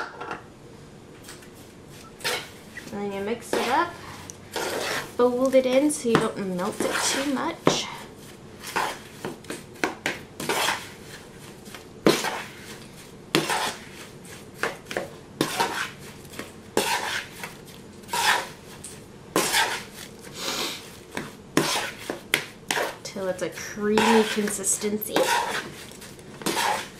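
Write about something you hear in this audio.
A metal spoon scrapes and stirs inside a plastic bowl.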